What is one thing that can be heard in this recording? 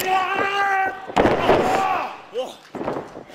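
A wrestler slams heavily onto the ring mat.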